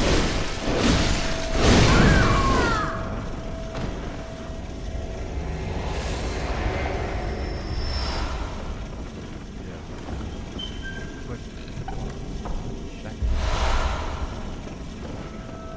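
Torches crackle and roar with flame.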